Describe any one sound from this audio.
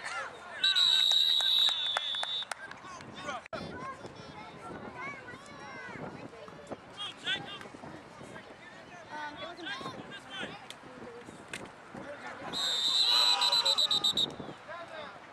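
A referee's whistle blows shrilly in long blasts.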